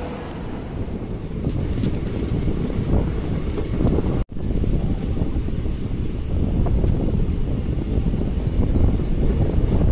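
A train rumbles and clatters along the tracks.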